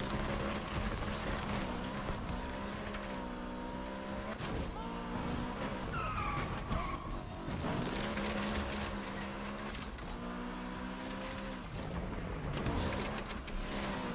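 A car engine roars loudly, revving up and down as the car races.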